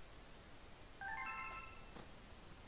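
A bright electronic chime rings out briefly.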